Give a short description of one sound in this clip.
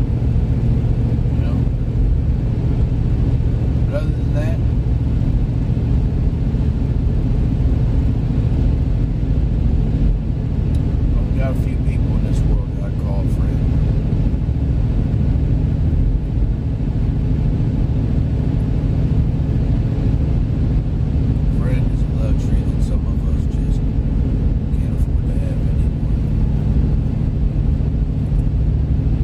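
A car engine and tyres rumble steadily on the road.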